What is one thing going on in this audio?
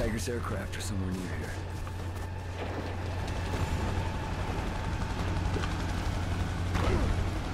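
A deep video game rumble drones steadily throughout.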